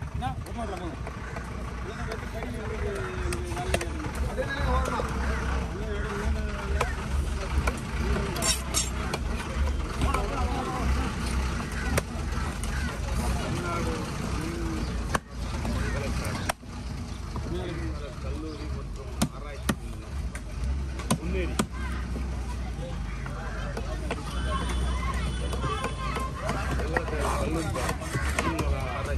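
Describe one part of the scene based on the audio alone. A knife scrapes and slices through fish on a wooden block.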